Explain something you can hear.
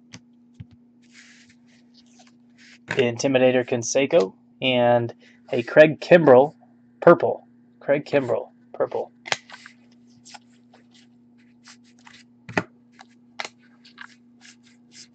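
Stiff cards rustle and flick as they are shuffled by hand.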